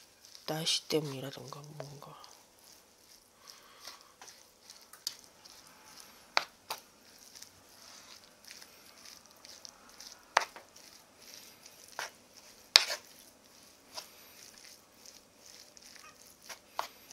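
Chopsticks and a spoon clink against a wooden bowl as food is mixed.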